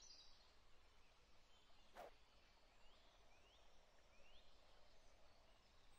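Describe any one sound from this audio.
A thrown disc swishes through the air.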